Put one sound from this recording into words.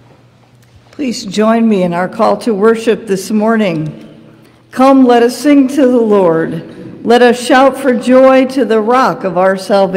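A woman speaks calmly and clearly into a microphone in a large echoing room.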